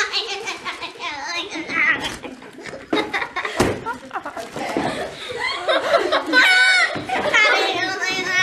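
A young girl talks excitedly and laughs close by.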